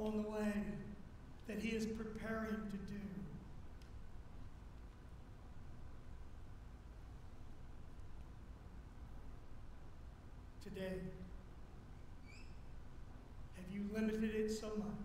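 A middle-aged man speaks slowly and with pauses through a microphone in an echoing hall.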